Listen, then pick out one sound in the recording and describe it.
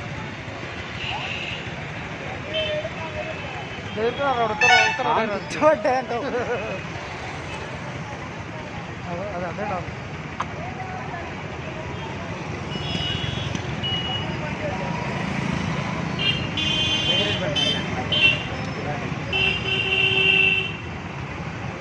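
Vehicle horns honk in short bursts.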